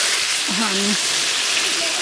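Water pours into a sizzling pan.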